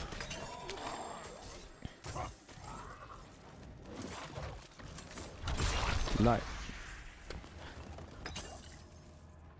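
Weapons strike and magic effects burst in a fierce fight.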